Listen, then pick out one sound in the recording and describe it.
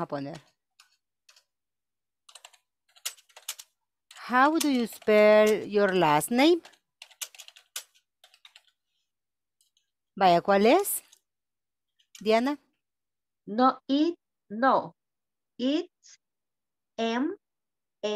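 A woman speaks slowly and clearly over an online call, with pauses between phrases.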